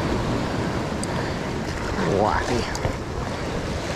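A fishing reel clicks and whirs as its line is wound in.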